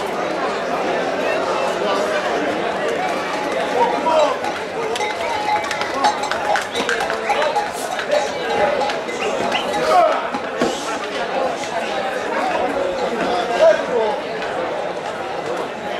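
A man yells to taunt the bulls.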